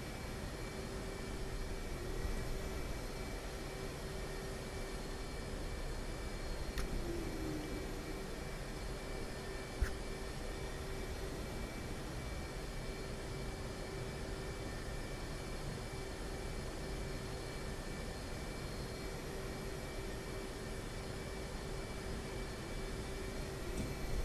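A jet engine hums and whines steadily.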